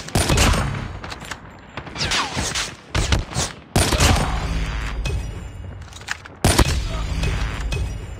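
Loud rifle shots crack one at a time.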